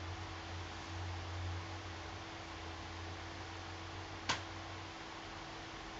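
A cat purrs softly and steadily close by.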